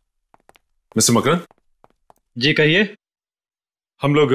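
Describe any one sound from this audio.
A man speaks sharply nearby.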